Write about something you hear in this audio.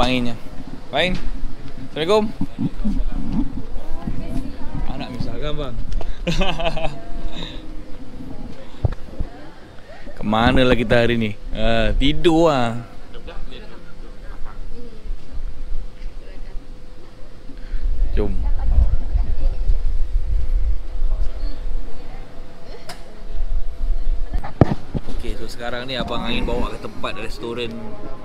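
A man talks with animation close by.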